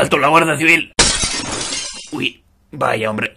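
Glass shatters and crashes.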